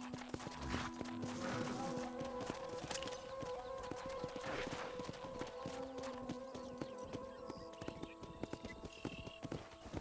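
Horse hooves thud steadily on a dirt path.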